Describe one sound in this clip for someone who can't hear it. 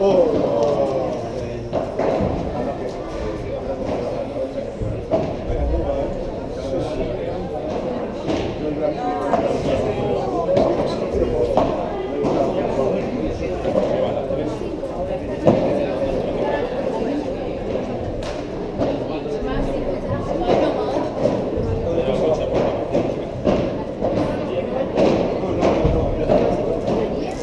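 Young boys chatter and call out in an echoing hall.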